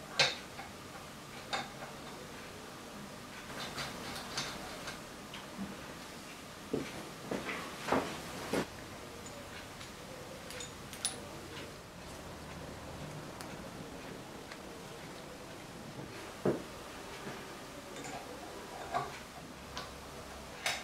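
Metal tools click and clink against a metal part.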